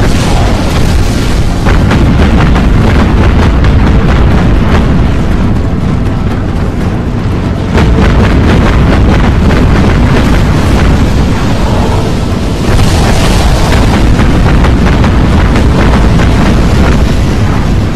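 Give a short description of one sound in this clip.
Heavy guns boom again and again.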